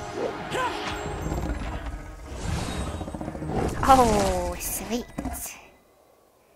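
Spells and blows crackle and crash in battle.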